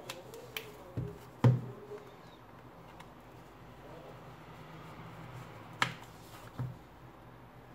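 A tablet taps on a rubber mat.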